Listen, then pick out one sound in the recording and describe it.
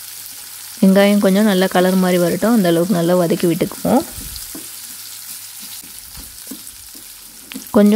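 A wooden spatula scrapes and stirs food in a metal pan.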